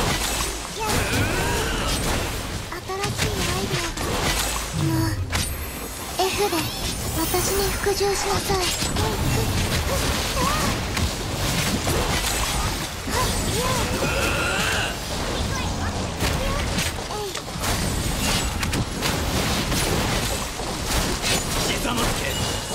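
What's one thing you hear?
Energetic electronic music plays throughout.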